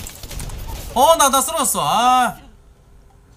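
A middle-aged man speaks loudly and with animation into a close microphone.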